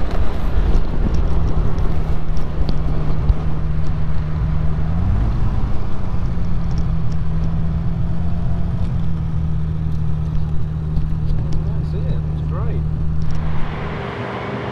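A car engine hums steadily up close, rising briefly in pitch as it speeds up.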